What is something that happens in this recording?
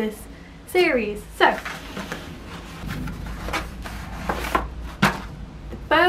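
A paper envelope rustles and crinkles as it is handled.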